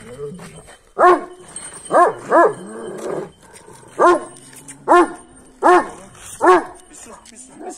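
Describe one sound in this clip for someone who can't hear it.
A large dog barks loudly several times, close by.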